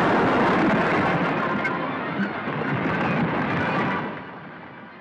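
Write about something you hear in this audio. Explosions roar and rumble nearby.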